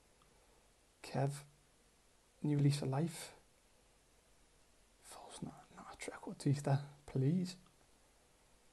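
A young man speaks calmly into a close microphone, in short bursts.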